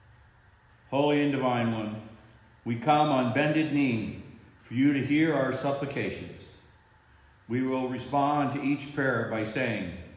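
A middle-aged man speaks slowly and solemnly, close to a microphone.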